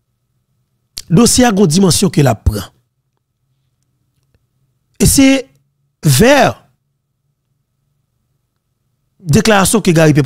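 A man speaks emphatically into a close microphone, in short bursts with pauses.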